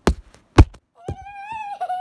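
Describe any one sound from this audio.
A young child shouts and squeals close by.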